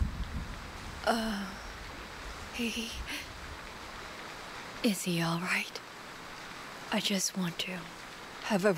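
A woman speaks softly into a phone.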